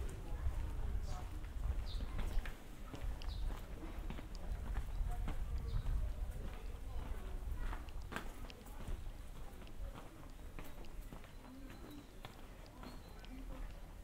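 Footsteps tap on cobblestones at a steady walking pace.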